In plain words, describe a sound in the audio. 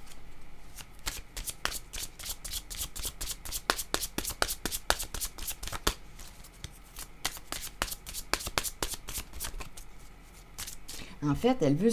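A deck of stiff cards is shuffled by hand, the cards flicking and slapping together.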